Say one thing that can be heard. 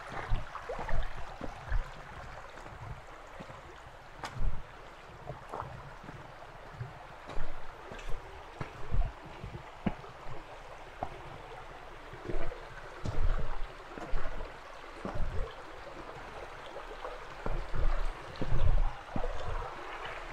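A shallow stream gurgles and trickles steadily nearby.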